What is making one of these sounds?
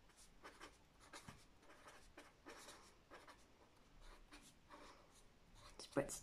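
A pen scratches across paper in short strokes.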